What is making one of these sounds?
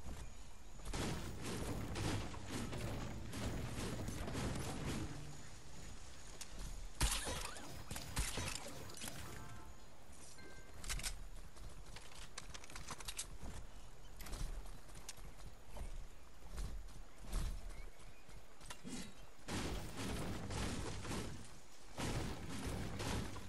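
A pickaxe chops repeatedly into wood.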